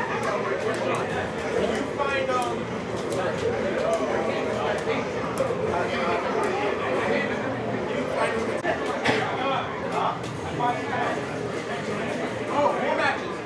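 Fighting game sound effects and music play from speakers.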